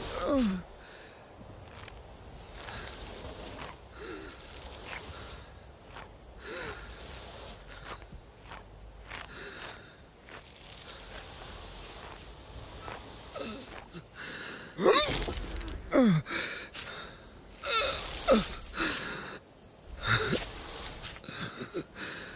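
Sheep bleat, some far off and one close by.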